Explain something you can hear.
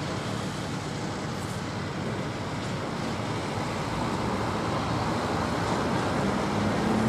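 A concrete pump engine rumbles steadily in the distance.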